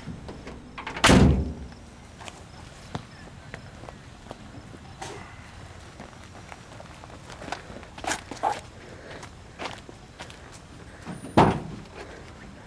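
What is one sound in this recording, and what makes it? A loud thump hits a truck bed.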